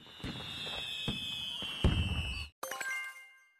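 Fireworks burst and crackle.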